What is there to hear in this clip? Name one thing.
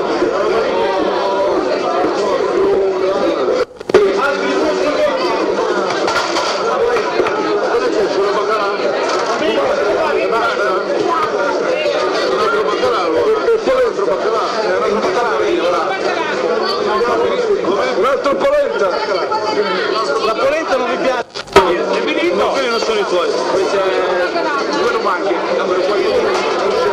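A crowd of men and women chatters loudly all around, close by.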